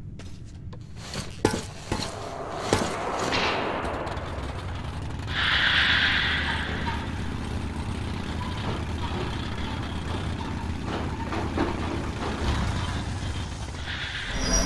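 A rail cart rumbles and clatters along tracks in an echoing tunnel.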